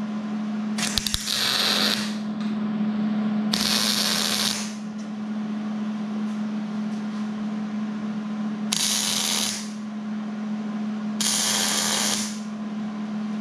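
A welding arc crackles and hisses in short bursts.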